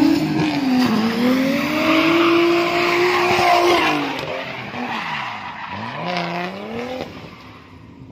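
A car engine revs hard and rises and falls in pitch as the car drifts.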